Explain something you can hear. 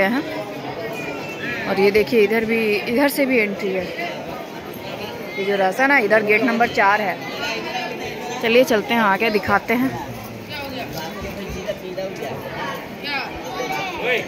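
A crowd of people talks and murmurs nearby.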